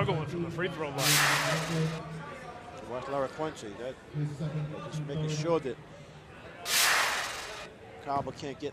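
A crowd cheers in short bursts.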